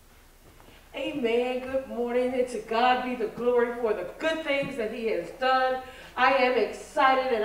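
A woman sings loudly through a microphone in an echoing room.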